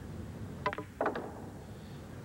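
Billiard balls knock together with a crisp clack.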